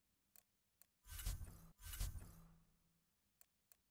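A loud whooshing sweep sounds twice and fades.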